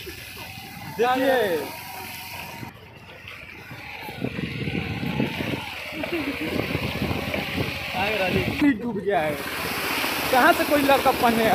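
Young men talk and laugh close by, outdoors.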